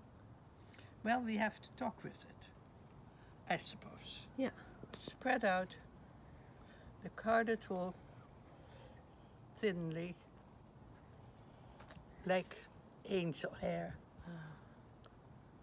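An elderly woman speaks calmly and close by, in short phrases.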